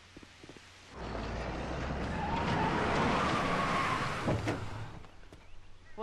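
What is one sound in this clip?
A car engine rumbles as a car pulls up.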